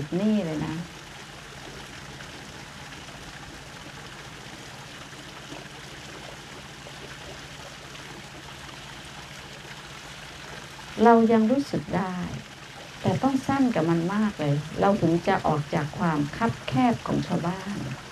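An elderly woman speaks calmly through a microphone.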